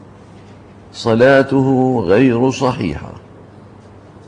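An elderly man speaks slowly and melodiously into a microphone.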